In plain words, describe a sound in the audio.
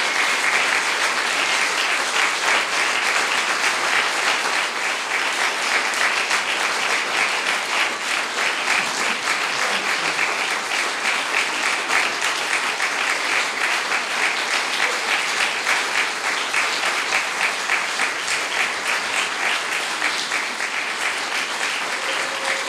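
An audience applauds steadily in a room.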